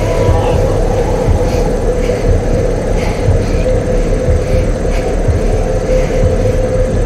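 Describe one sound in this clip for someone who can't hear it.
A shopping cart rattles as it rolls over pavement.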